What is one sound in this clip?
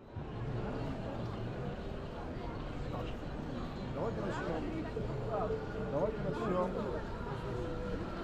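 A crowd chatters outdoors in a wide open square.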